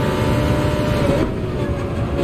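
A racing car engine drops in pitch as the car shifts down.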